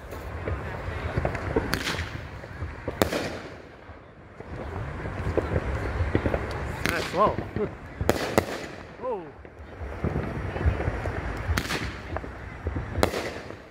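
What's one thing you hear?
Fireworks crackle in the sky.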